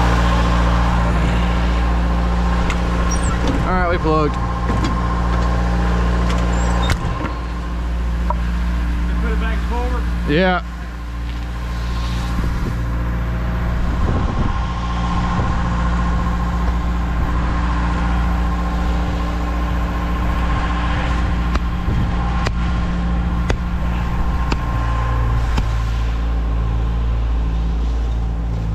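An engine hums steadily nearby.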